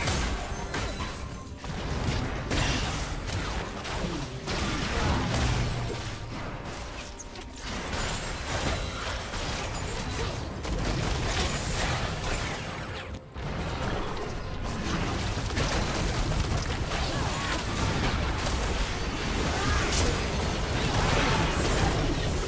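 Game spell effects whoosh, crackle and clash as a battle rages.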